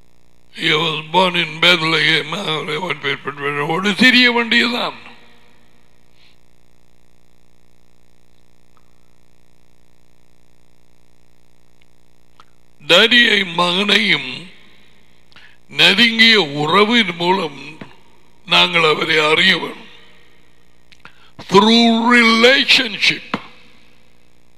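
An elderly man speaks with animation, close into a headset microphone, in short bursts with pauses.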